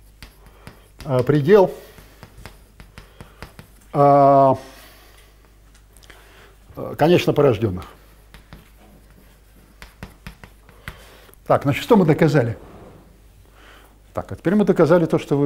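An elderly man speaks with animation in short bursts.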